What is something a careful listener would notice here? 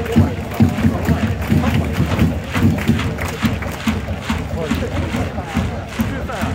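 Drums beat steadily in a stadium crowd.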